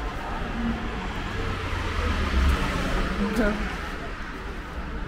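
Cars drive past on a nearby street.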